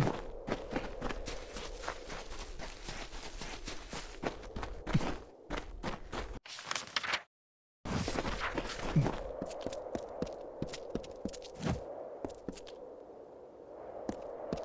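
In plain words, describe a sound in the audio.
Armoured footsteps thud quickly on grass and stone.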